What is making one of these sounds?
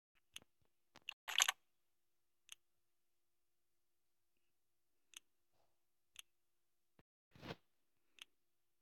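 A gun is drawn with a sharp metallic click.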